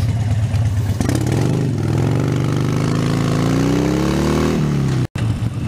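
A motorcycle engine revs up and rises in pitch as the bike pulls away.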